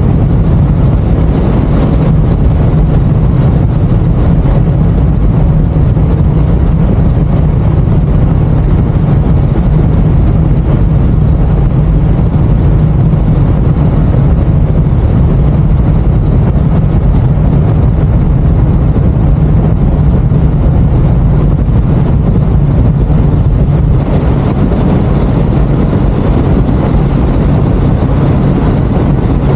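Wind buffets loudly against a microphone.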